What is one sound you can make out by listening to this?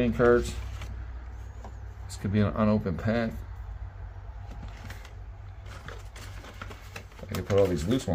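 Plastic game cases clatter and knock together as they are handled.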